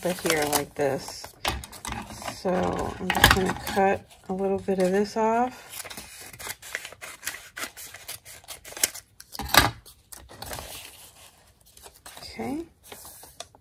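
Paper rustles and crinkles under hands.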